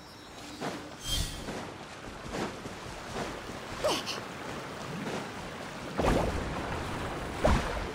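A waterfall splashes steadily.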